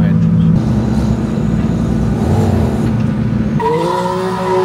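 A sports car engine rumbles and burbles at close range.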